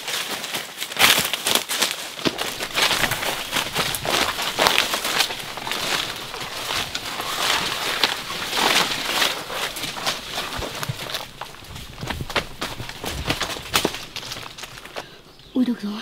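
Leaves and dry twigs rustle and crackle as someone pushes through dense undergrowth.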